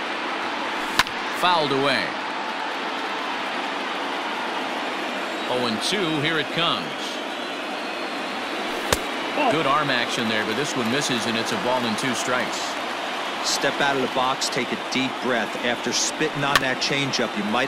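A baseball smacks into a catcher's mitt with a sharp pop.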